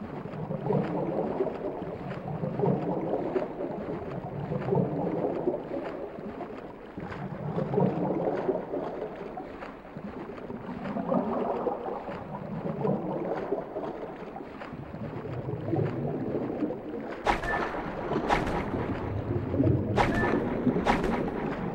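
Water swishes and surges in slow, regular swimming strokes.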